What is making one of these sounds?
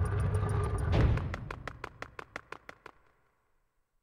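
A rapid run of bright game chimes sounds and fades away.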